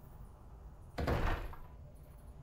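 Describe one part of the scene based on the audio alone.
A heavy thud lands on a floor and crashes through debris.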